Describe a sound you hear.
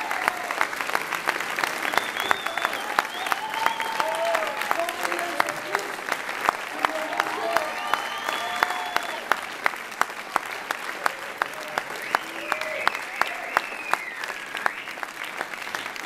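A young woman sings through a microphone in a large echoing hall.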